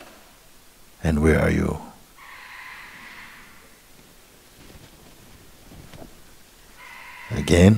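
A man speaks calmly and slowly, close to a microphone.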